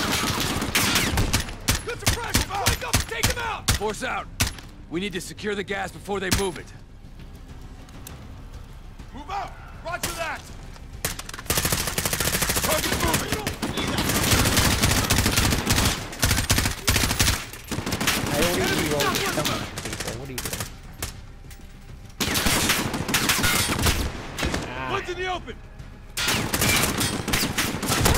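Rapid gunfire crackles in loud bursts.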